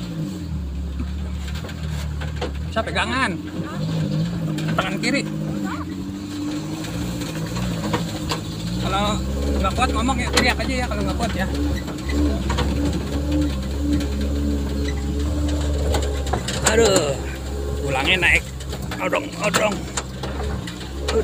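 A motorbike engine hums steadily at low speed.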